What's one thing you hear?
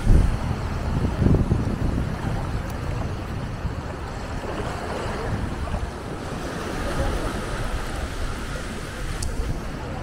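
Small waves lap gently at a shore.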